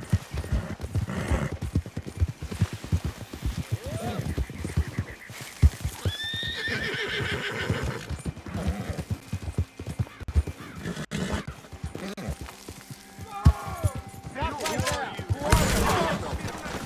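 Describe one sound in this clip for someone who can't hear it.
A horse's hooves thud steadily at a gallop.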